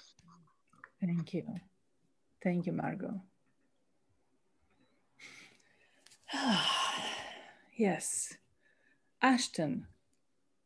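A middle-aged woman speaks with animation over an online call.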